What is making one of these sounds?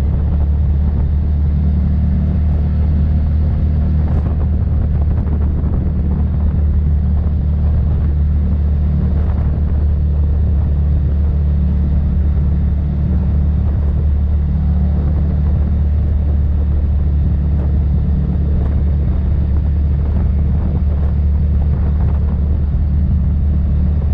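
An off-road vehicle's engine rumbles steadily up close while driving.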